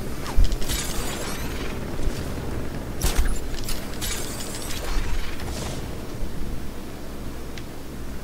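Wind rushes loudly in bursts of whooshing.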